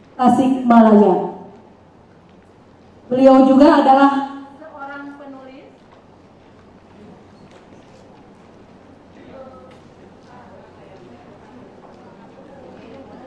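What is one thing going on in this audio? A woman speaks with animation through a microphone, heard over loudspeakers.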